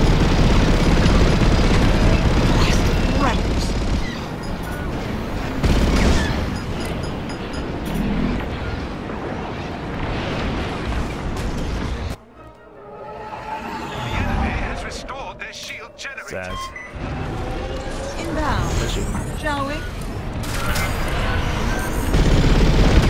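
A starfighter engine roars steadily.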